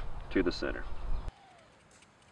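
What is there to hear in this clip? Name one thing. A hatchet chops into wood.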